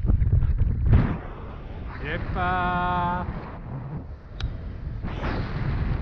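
A paraglider wing flaps and rustles in the wind.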